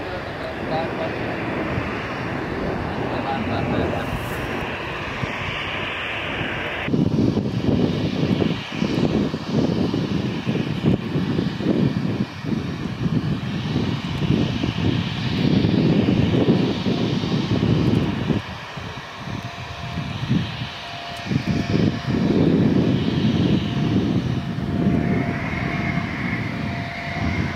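A jet aircraft roars loudly as it flies overhead.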